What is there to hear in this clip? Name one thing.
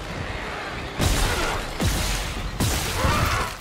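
Heavy gunshots boom in a row.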